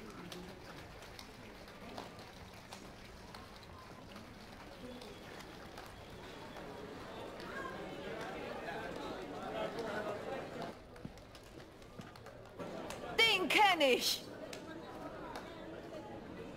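A man claps his hands slowly.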